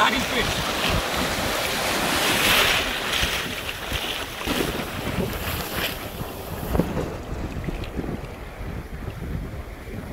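Waves wash and break in the surf.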